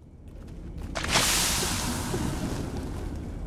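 A heavy metal door grinds open with a rushing hiss.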